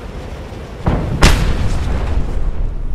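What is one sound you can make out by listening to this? A parachute snaps open with a heavy whoosh.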